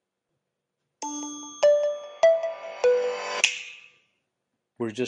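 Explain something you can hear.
A phone plays a short electronic startup jingle.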